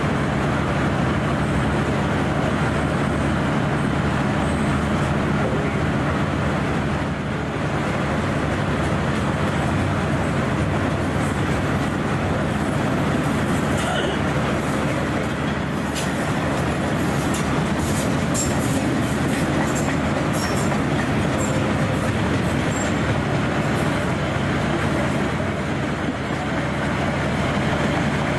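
A long freight train rumbles past close by, its wheels clattering steadily on the rails.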